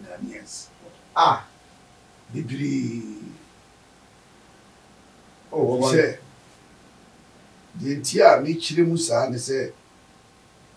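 An elderly man speaks calmly in short bursts into a microphone.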